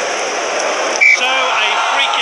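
A referee's whistle blows once, short and sharp.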